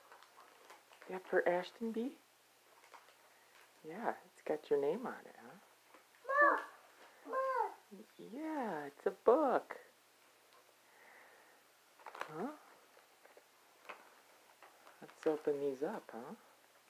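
A plastic wrapper crinkles as a young boy handles it.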